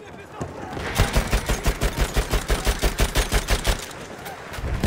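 A machine gun fires a rapid burst of loud shots.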